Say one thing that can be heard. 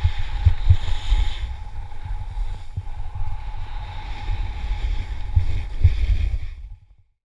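A snowboard scrapes and hisses over snow.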